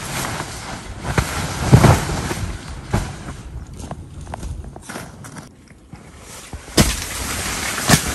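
Tent fabric rustles and flaps as it is handled.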